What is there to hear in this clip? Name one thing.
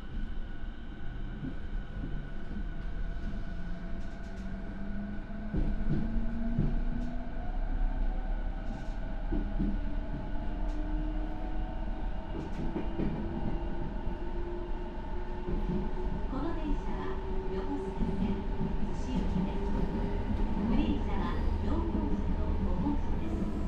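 A train's electric motor whines, rising in pitch as it speeds up.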